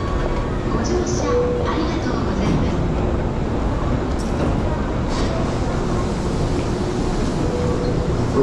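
Footsteps of a crowd shuffle across a hard floor.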